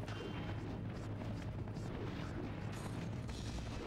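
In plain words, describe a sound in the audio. A helicopter's rotor whirs steadily overhead.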